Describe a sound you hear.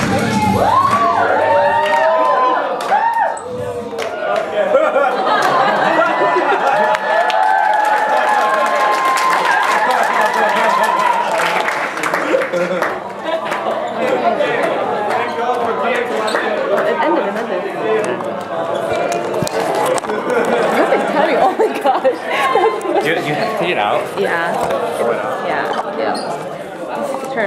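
A crowd of young men and women shout and sing together loudly in a large echoing hall.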